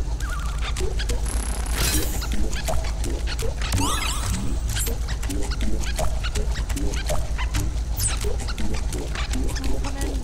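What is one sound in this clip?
Short cartoon blips and chirps sound as a little creature hops along.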